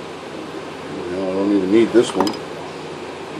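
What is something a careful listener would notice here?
A man speaks briefly and calmly, close by.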